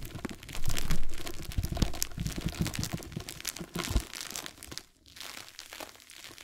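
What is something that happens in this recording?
Fingers rub and tap a soft plastic mesh roll close up, making crisp crinkling and scratching sounds.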